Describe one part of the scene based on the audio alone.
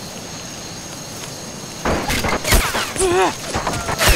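Soldiers' footsteps tramp on a dirt path.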